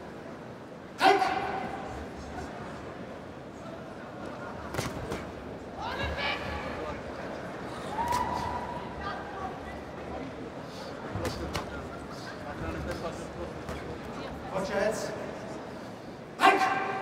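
A crowd cheers and roars in sudden bursts.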